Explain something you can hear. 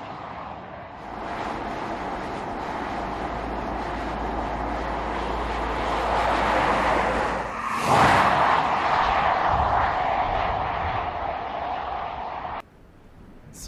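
A car drives past steadily on a road.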